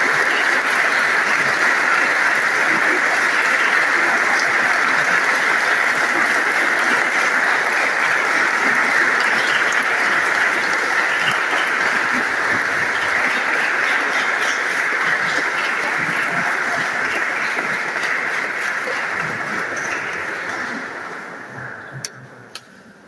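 A large crowd applauds steadily in a large echoing hall, then the applause fades away.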